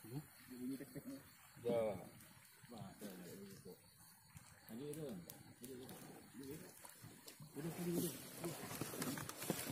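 A cast net is hauled up out of the water, splashing and dripping.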